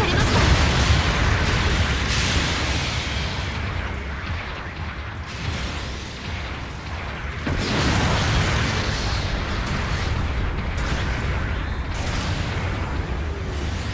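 Heavy gunfire rattles.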